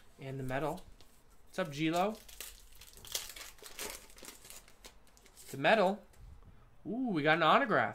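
A plastic card sleeve crinkles and rustles in hands.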